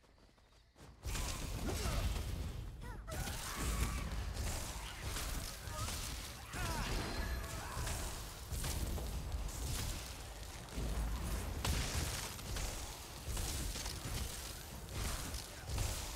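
Magic spells crackle and boom in a fantasy battle.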